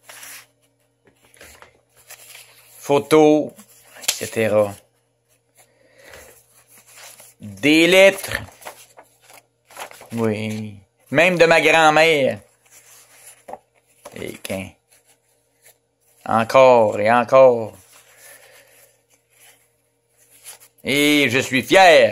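Papers and photographs rustle as they are handled.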